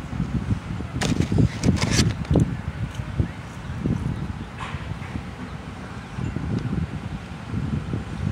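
A young woman chews crunchy food with her mouth close to a microphone.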